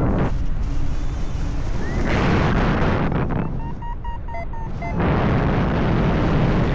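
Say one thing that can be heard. Wind roars loudly past the microphone outdoors, rising and falling in gusts.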